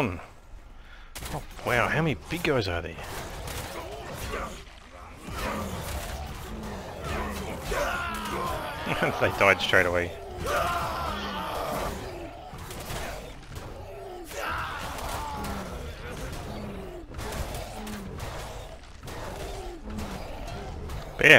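Blows and weapon clashes of a fierce fight thud repeatedly.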